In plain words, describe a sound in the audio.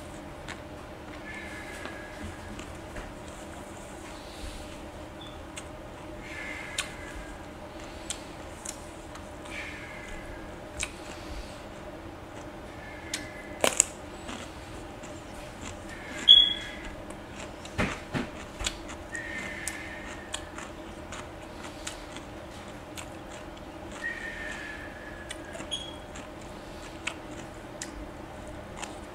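A woman chews and smacks her lips on food close to a microphone.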